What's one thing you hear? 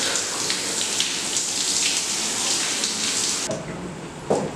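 Water from a shower splashes steadily.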